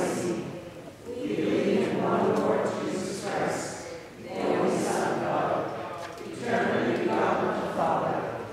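A woman reads aloud calmly in a large, echoing hall.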